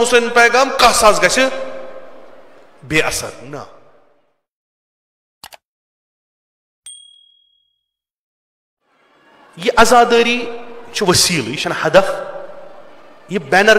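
An elderly man preaches with passion into a microphone, his voice echoing in a reverberant hall.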